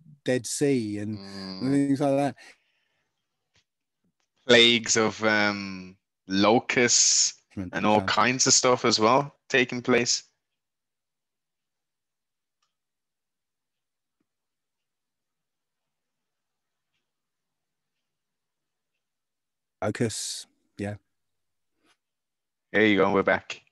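A man talks with animation over an online call, with pauses.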